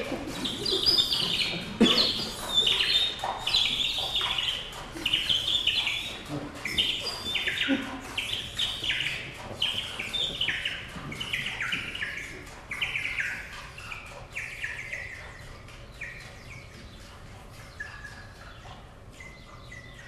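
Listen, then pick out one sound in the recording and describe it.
A small chamber ensemble plays in a concert hall.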